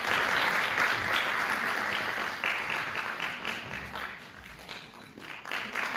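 An audience claps along in rhythm.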